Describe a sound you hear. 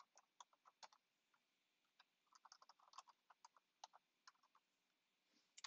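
Keys click on a keyboard as someone types.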